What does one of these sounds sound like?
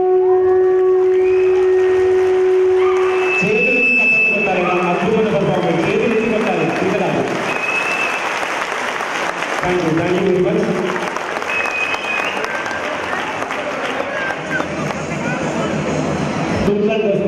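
Loud music with singing plays through loudspeakers in a large hall.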